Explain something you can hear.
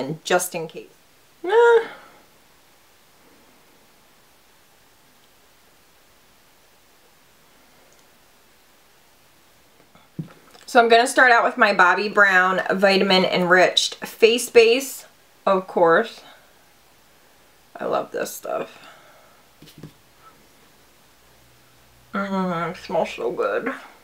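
A young woman talks calmly and close to a microphone, in bursts with pauses.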